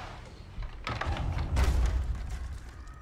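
A body lands with a heavy thud.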